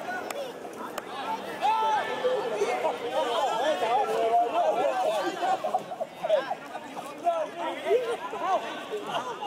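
Young men shout to each other from across an open field outdoors.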